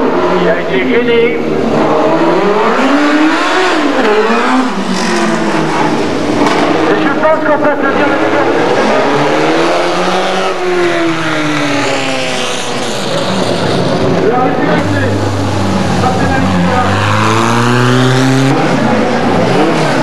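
Racing car engines roar and rev up and down close by.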